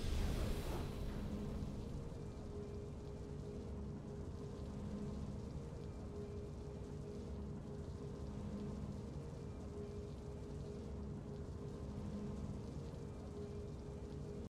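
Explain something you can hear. Soft triumphant music plays with a gently pulsing low tone.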